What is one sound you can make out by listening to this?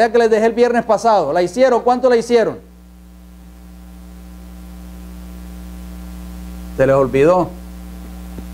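A middle-aged man speaks through a microphone with animation, with pauses.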